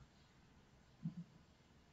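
A mouse clicks twice quickly.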